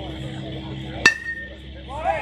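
A baseball smacks sharply against a bat or glove.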